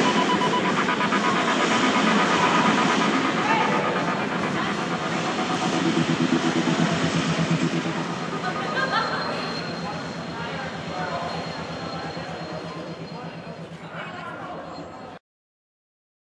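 An electric guitar plays loudly through an amplifier in a live band.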